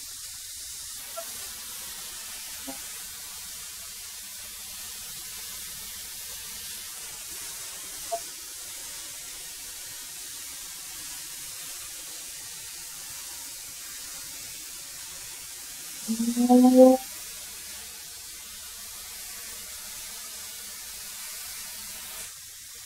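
A wood planer motor runs with a steady hum.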